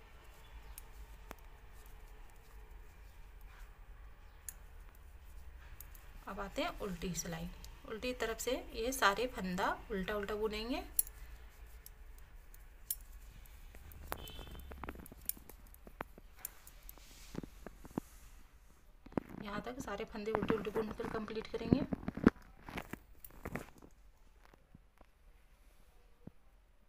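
Metal knitting needles click against each other.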